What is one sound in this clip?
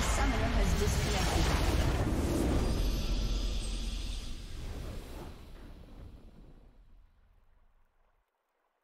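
A triumphant video game victory fanfare booms, then slowly fades away.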